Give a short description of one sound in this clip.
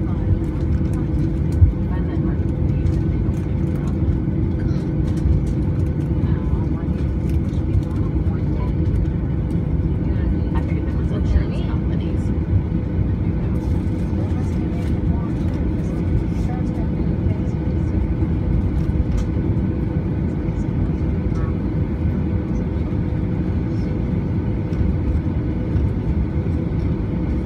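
An aircraft's wheels rumble over the taxiway.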